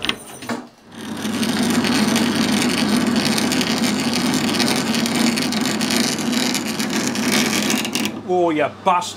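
A cutting tool scrapes loudly against spinning metal.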